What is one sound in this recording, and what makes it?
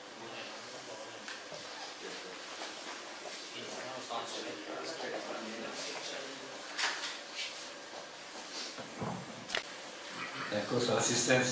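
A man speaks calmly, heard from across the room.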